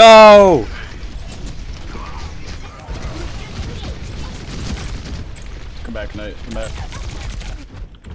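Rapid gunfire and blasts ring out from a video game.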